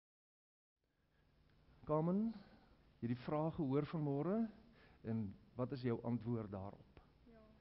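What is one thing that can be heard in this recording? An elderly man speaks calmly to a small group nearby in an echoing hall.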